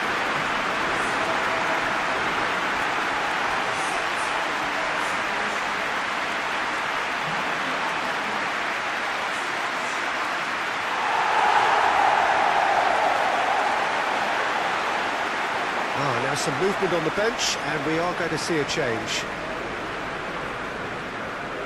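A large stadium crowd roars steadily and swells into a loud cheer.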